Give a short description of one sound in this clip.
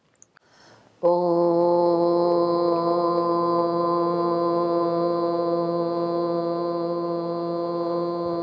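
A woman hums one long, steady note.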